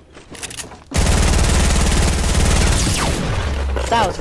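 Wooden boards crash and splinter as a structure breaks apart.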